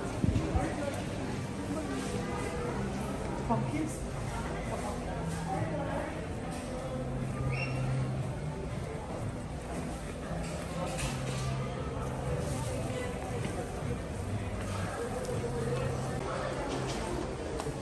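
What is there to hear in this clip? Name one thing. Footsteps pad on a smooth hard floor.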